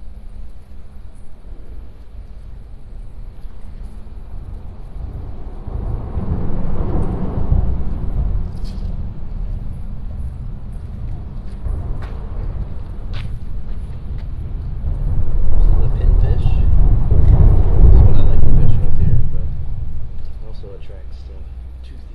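Wind gusts outdoors, rumbling heavily.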